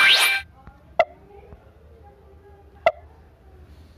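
Short game clicks sound as buttons are pressed.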